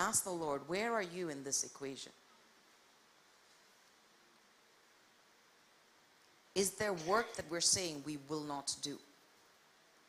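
A woman speaks calmly through a microphone in a large room, pausing between phrases.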